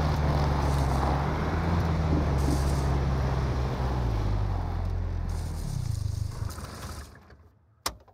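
Tyres rumble over rough ground and brush through bushes.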